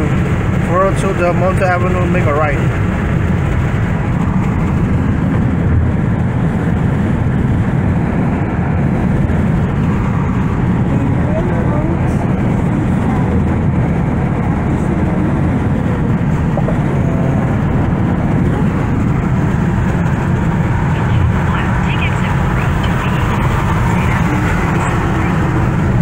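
A car's engine and tyres rumble steadily from inside as it drives along a road.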